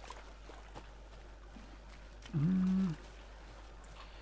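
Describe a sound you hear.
Footsteps crunch softly on forest ground.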